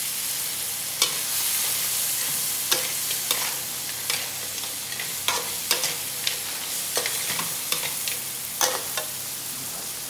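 A metal spatula scrapes and clacks against the pan.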